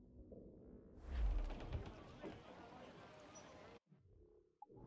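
Waves rush and splash against a sailing ship's hull.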